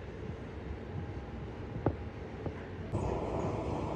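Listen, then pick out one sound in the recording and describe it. A hand rubs over wet clay.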